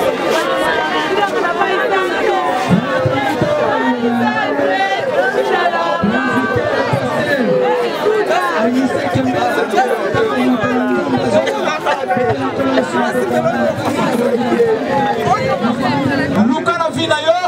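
A crowd of people talks and shouts all around.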